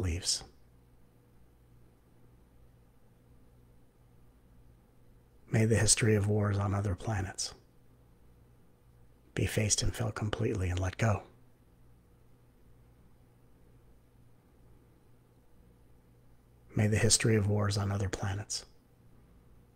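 A middle-aged man speaks calmly in short bursts, heard through an online call.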